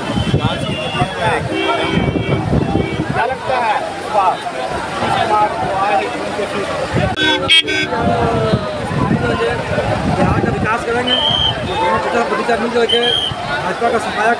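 A middle-aged man speaks animatedly into a microphone, close by.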